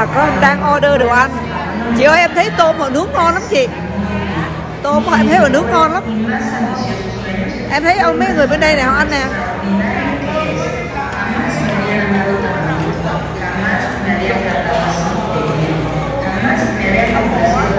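A crowd of people chatter in a busy room.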